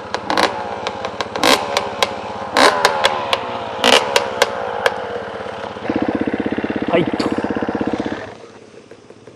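A dirt bike engine revs and roars close by.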